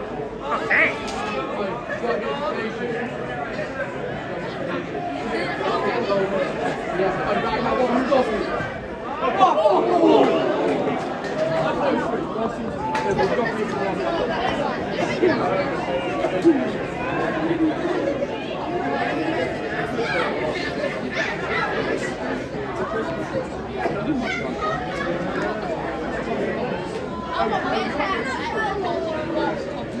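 A large crowd of fans chants and shouts outdoors.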